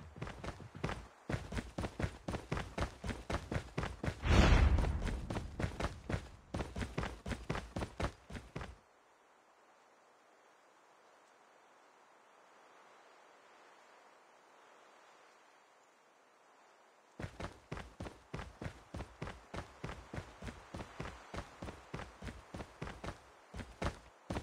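Quick footsteps thud on hard ground.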